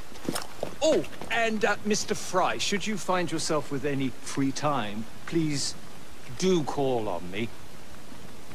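An elderly man speaks warmly and with animation, up close.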